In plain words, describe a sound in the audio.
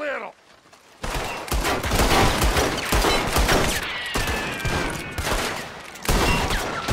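Rifles and pistols fire rapidly in loud bursts.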